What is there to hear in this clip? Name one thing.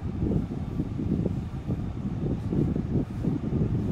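Cloth rustles as it is unfolded and spread out by hand.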